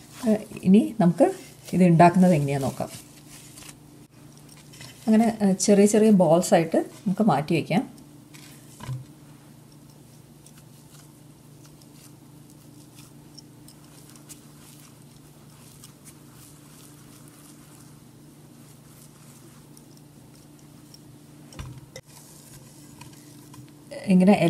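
Hands softly squish and knead dough.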